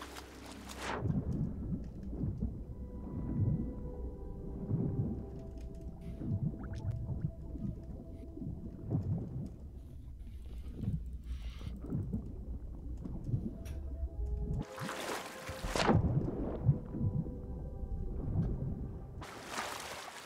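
Muffled water surges in slow, regular pulses underwater.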